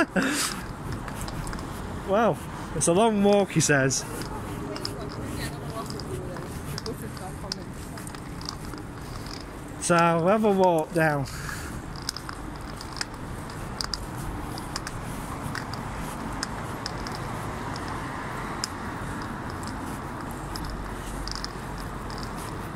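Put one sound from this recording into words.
Traffic hums steadily outdoors along a busy street.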